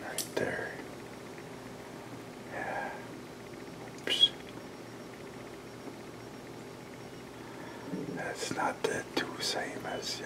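A deer rustles leaves as it browses on a bush.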